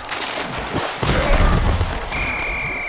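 Heavy bodies collide with a loud thud.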